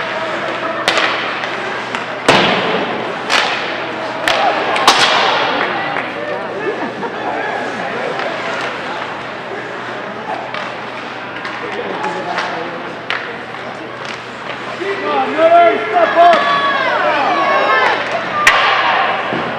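A puck bangs against the boards in an echoing ice rink.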